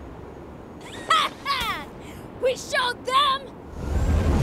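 A young boy shouts excitedly.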